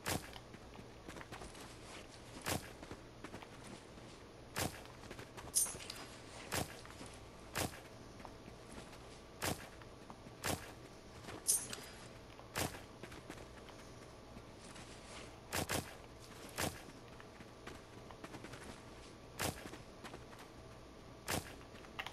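A spade digs into soft earth with sharp thuds again and again.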